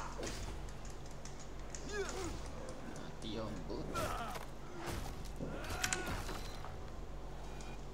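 Blades clash and bodies thud in a fight.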